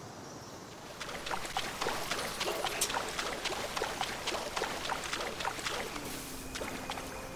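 Water splashes steadily with wading steps.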